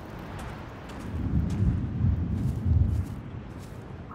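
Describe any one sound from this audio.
A gust of wind rushes past with a low rumble.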